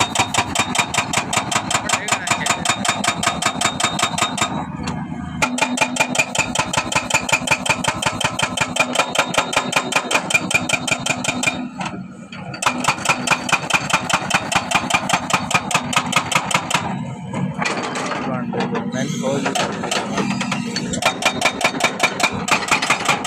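A hydraulic hammer on an excavator pounds the soil in rapid, steady blows.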